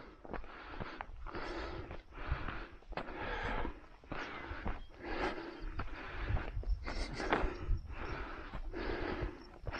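Footsteps crunch steadily on a dirt trail.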